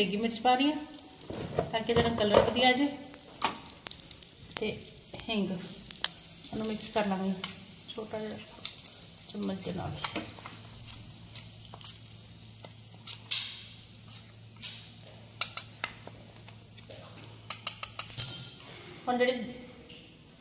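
Hot oil sizzles and crackles in a small pan.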